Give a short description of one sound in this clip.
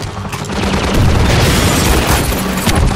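An explosion booms as a gunship blows apart.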